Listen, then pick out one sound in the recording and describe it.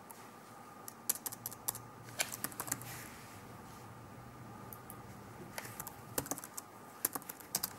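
Keyboard keys click in quick, uneven bursts of typing.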